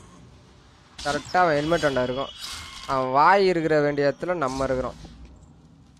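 A shimmering, rising magical chime rings out and fades.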